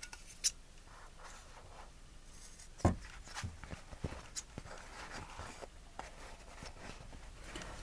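Scissors snip through thick paper.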